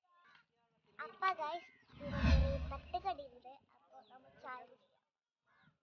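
A young girl speaks cheerfully close by.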